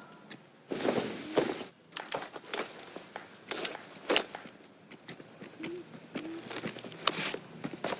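Leather and paper rustle as a wallet is handled and opened.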